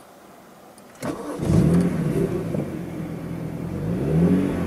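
A car engine revs up and down, heard from inside the car.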